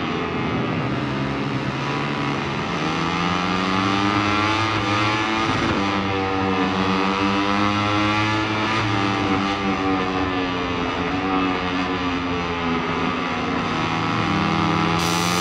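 A motorcycle engine roars loudly, its pitch rising and falling as it speeds up and shifts gears.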